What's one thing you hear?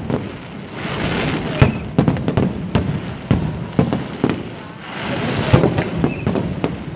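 Fireworks burst with loud booming bangs outdoors.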